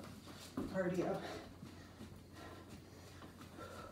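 Sneakers thump lightly on a floor.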